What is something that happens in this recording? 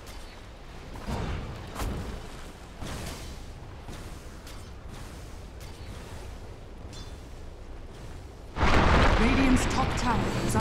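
Weapons clash and magic spells burst in a fight.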